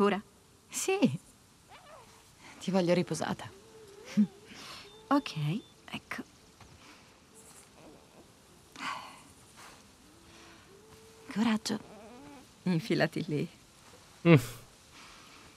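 A second young woman answers warmly close by.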